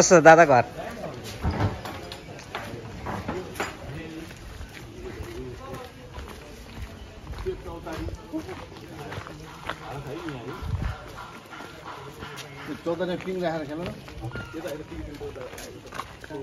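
Men talk nearby as they walk outdoors.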